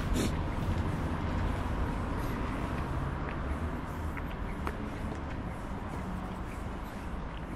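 A wide river flows gently.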